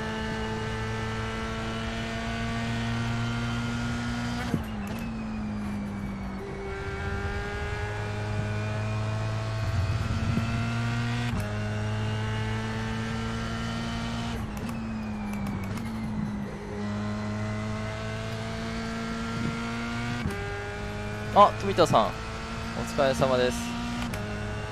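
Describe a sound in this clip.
A racing car engine roars steadily, its pitch climbing through each gear and dropping at each shift.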